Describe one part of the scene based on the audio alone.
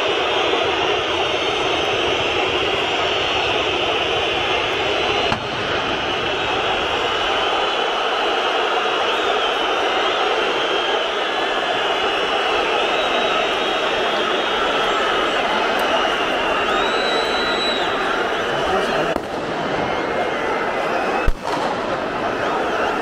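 A large stadium crowd roars and chants loudly all around.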